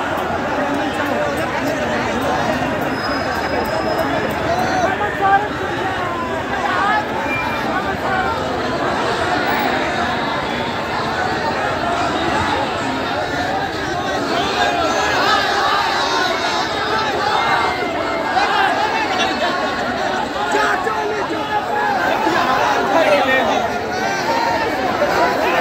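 A large crowd of men and women chatters and shouts nearby, outdoors.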